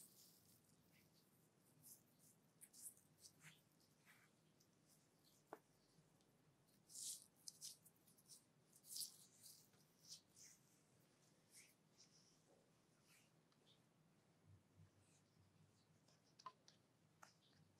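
Hands rub cream into bare skin, with soft wet squishing sounds close to the microphone.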